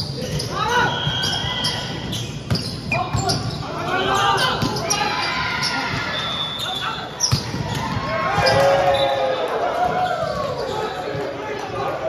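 Players shout and call out to each other in a large echoing hall.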